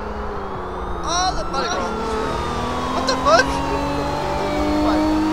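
Car tyres squeal as the car slides sideways.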